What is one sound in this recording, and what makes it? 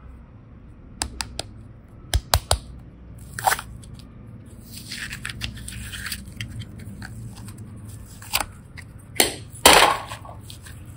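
A plastic cup clicks and taps as foam clay is pulled out of it.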